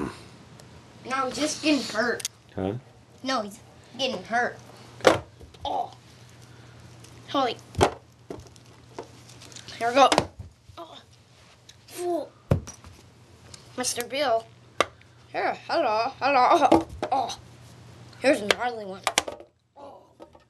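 A young boy talks excitedly.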